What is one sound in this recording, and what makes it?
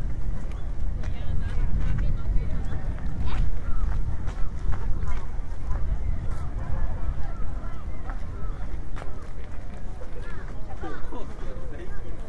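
Men and women chatter nearby as they walk past.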